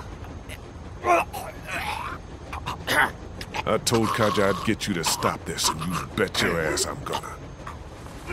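A man speaks angrily and tensely, close by.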